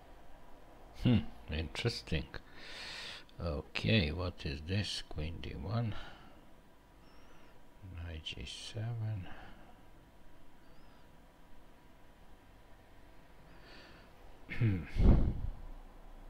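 A middle-aged man talks calmly into a close microphone.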